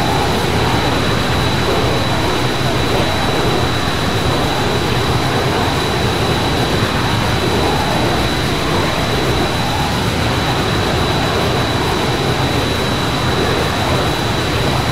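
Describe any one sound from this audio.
A jet engine roars steadily as a plane flies close by.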